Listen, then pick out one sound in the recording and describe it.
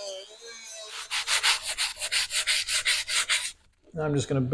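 Sandpaper rasps rapidly against metal.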